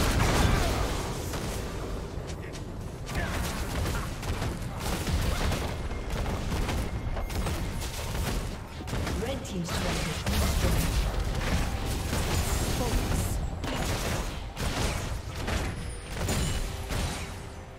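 Game spells and hits crackle and clash.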